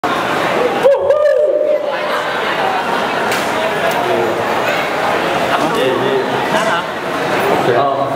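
A crowd chatters loudly in the background.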